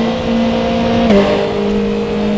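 A racing car engine dips briefly in pitch as a gear shifts up.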